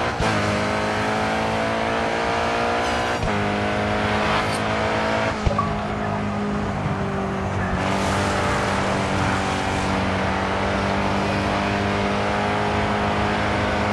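A race car engine roars at high speed, its pitch climbing through the gears.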